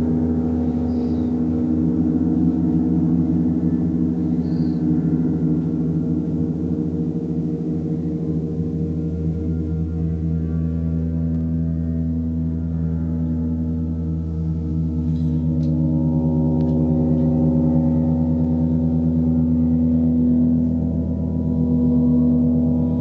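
A large gong hums and swells with a deep, steady, shimmering drone.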